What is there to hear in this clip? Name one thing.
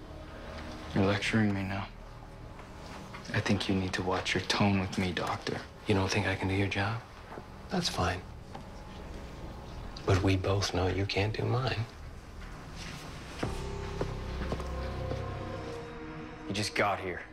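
A young man answers quietly nearby.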